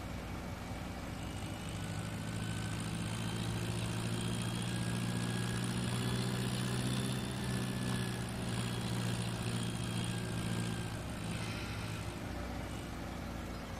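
A tractor engine drones steadily as the tractor drives along.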